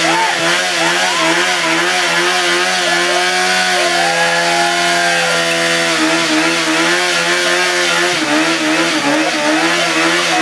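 A tyre screeches as it spins on the ground.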